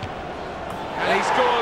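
A crowd cheers more loudly.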